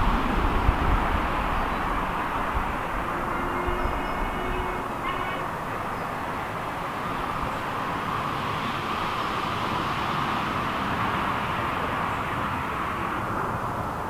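A distant steam locomotive chuffs steadily.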